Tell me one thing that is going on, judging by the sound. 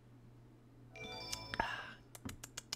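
A video game plays a short, bright chiming sound effect.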